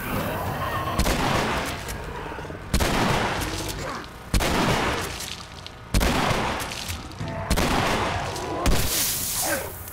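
Shotgun blasts boom one after another, with a ringing echo.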